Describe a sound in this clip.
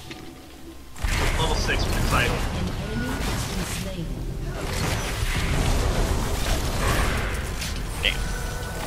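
Magic spells whoosh, blast and crackle in a video game battle.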